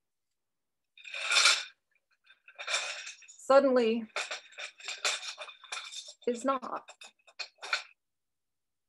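Paper crinkles and rustles in a glass bowl.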